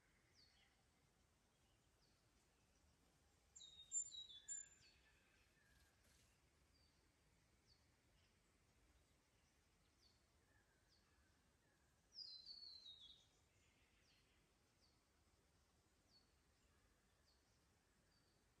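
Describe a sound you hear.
A shallow creek trickles softly over stones.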